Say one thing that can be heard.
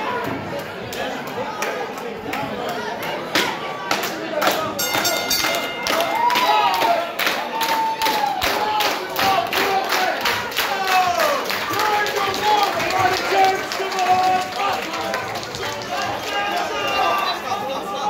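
A crowd claps in a fast, steady rhythm in an echoing hall.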